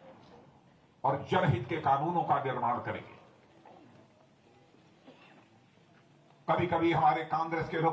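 An elderly man speaks forcefully into a microphone over a loudspeaker, with pauses between phrases.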